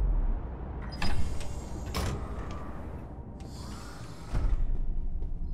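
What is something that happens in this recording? Sliding doors whoosh open.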